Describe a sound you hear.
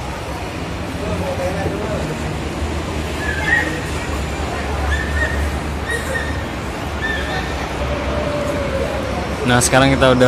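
An escalator hums steadily as it moves.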